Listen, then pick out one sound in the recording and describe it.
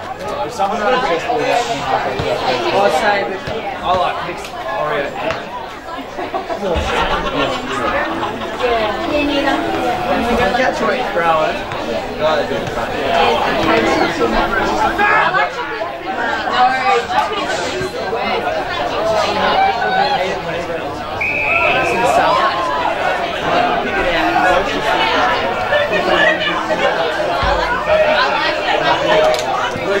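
Several men shout and call out to each other outdoors.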